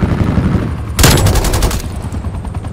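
Gunfire rattles in a rapid burst.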